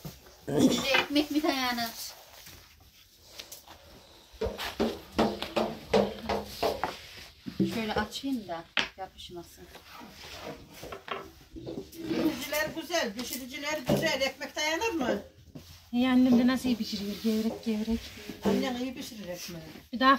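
A woman talks nearby in a lively way.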